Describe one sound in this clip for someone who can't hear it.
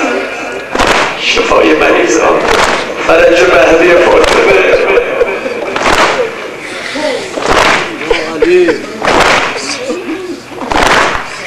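A crowd of men beat their chests in rhythm.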